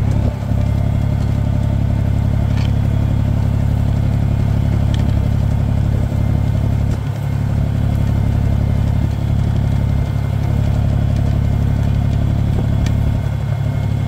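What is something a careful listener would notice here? A tractor engine drones steadily close by.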